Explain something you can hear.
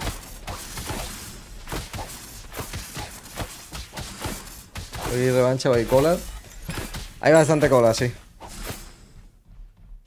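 Video game weapons clash and strike in quick impacts.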